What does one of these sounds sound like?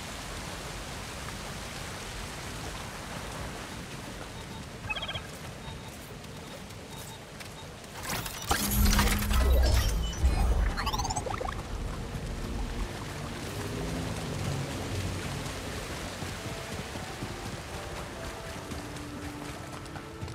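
Footsteps run over rocky ground.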